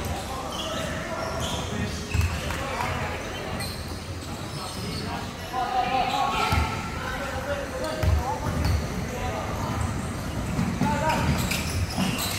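Basketballs bounce on a hardwood floor in a large echoing hall.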